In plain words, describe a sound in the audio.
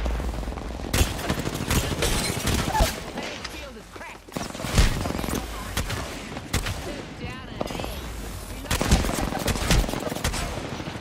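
Rapid gunshots fire in sharp bursts.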